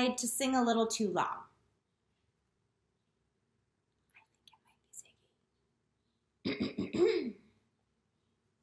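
A woman talks to the listener with animation, close to a microphone.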